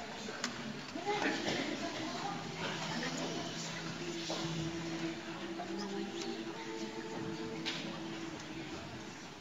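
A mixed choir begins to sing softly.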